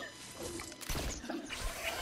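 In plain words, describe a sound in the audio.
A gun fires a few quick shots.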